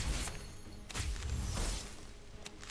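A sword slashes with a sharp whoosh.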